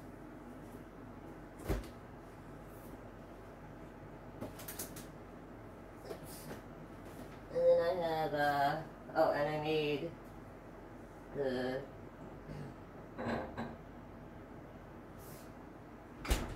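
A refrigerator door opens and shuts.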